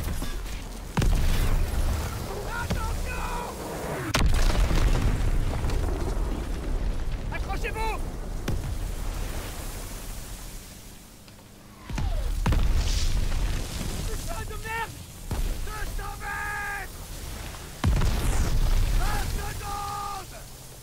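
Rough waves crash and slap against a boat.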